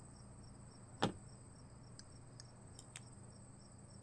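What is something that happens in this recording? Short electronic clicks and blips sound now and then.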